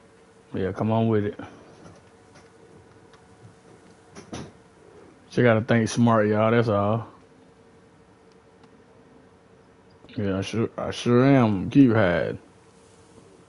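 A man speaks with animation into a headset microphone, close up.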